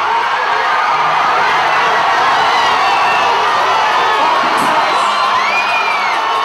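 A man shouts to the crowd through a loudspeaker.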